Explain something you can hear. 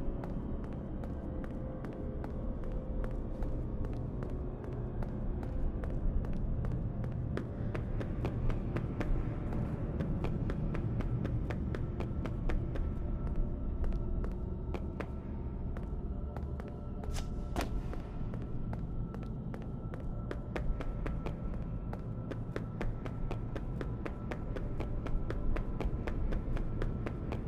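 Footsteps tap quickly and steadily on a hard floor.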